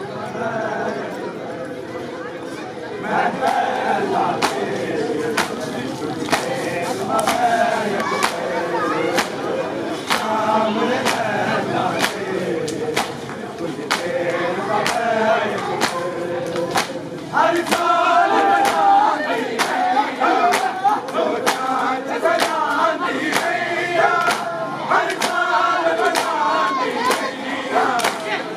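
Men beat their bare chests in a steady rhythm.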